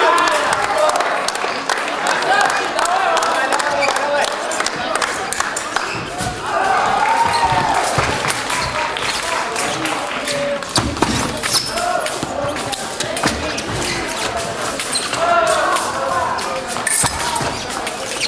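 Voices of a crowd chatter and call out in a large echoing hall.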